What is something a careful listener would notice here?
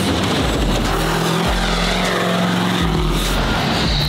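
Tyres screech on wet pavement.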